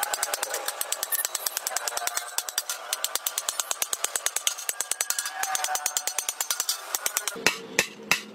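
A hammer taps rapidly on a thin metal sheet.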